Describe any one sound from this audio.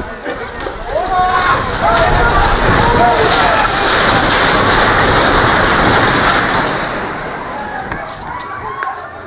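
Men scream and shout loudly as a building falls.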